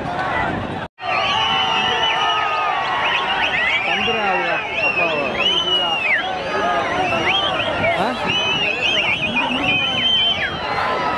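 Men nearby talk and call out loudly.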